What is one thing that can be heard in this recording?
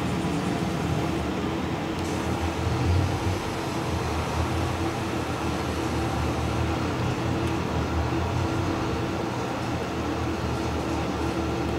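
A tractor engine hums steadily.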